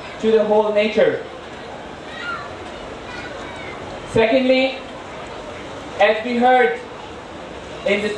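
A man speaks slowly and calmly into a microphone, in short phrases with pauses.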